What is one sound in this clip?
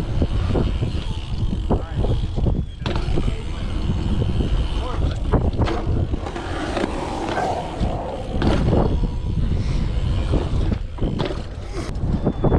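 Bike tyres roll and rumble over concrete.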